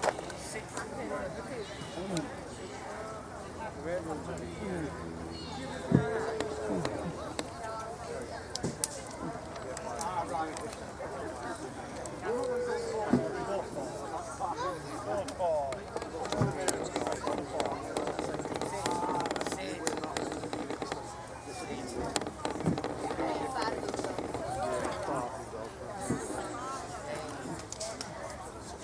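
Several men and women chat at a distance outdoors.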